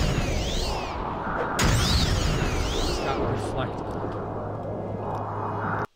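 Magic spells whoosh and shimmer during a fight.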